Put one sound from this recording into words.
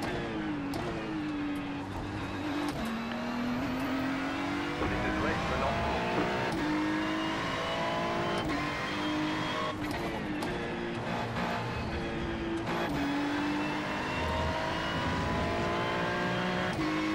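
A race car engine roars loudly, rising in pitch and dropping sharply with each gear change.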